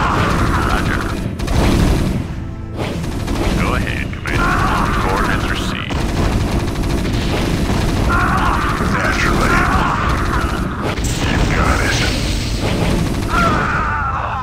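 Heavy tanks fire loud cannon blasts.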